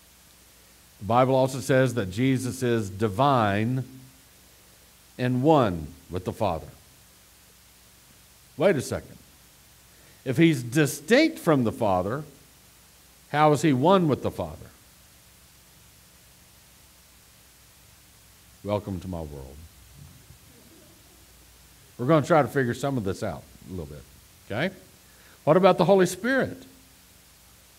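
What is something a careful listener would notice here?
A man speaks with animation through a headset microphone, pausing often.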